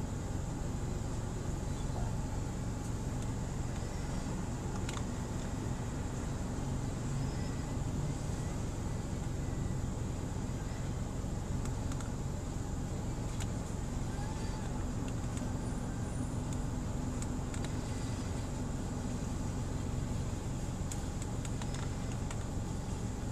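A car engine runs, heard from inside the cabin.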